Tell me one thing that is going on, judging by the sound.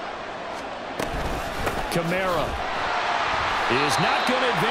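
Football players collide with thuds at the snap.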